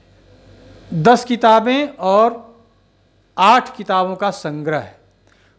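A middle-aged man speaks calmly into a handheld microphone, close by.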